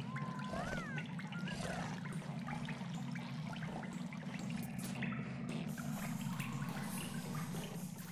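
Short chirps and blips of game sound effects ring out.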